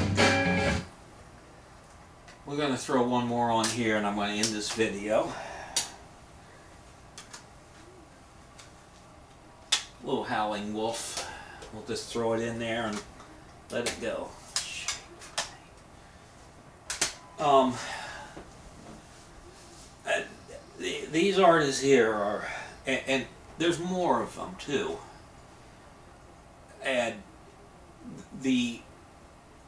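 A middle-aged man talks calmly and close by, in short bursts with pauses.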